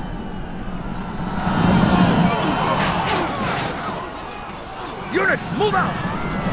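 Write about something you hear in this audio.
Weapons clash in the din of a large battle.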